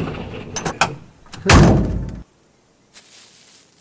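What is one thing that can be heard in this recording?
A truck door swings open.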